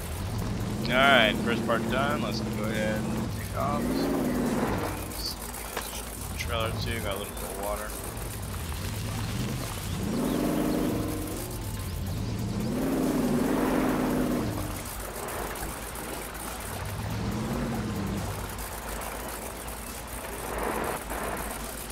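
An engine revs up and down as a vehicle crawls over rough ground.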